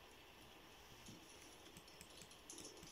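Fabric rustles close by.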